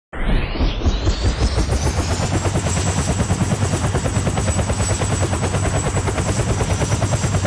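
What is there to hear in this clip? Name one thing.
A helicopter's rotor chops rapidly and steadily.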